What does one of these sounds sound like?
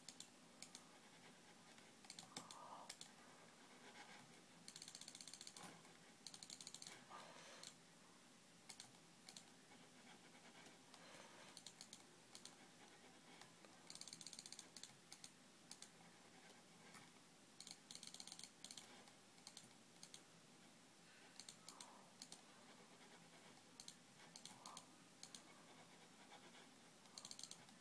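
Short electronic game sounds blip and chime repeatedly.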